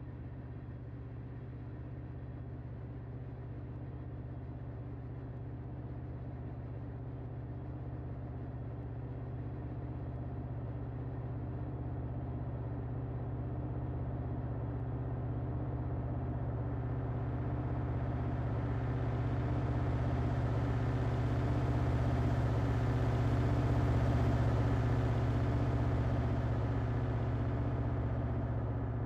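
A freight train rumbles and clatters steadily across a bridge.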